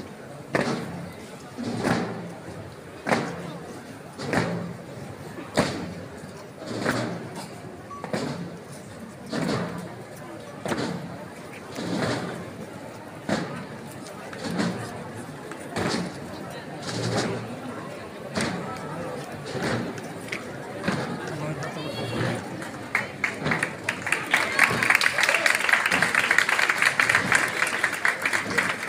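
Slow, steady footsteps of a marching procession thud on pavement.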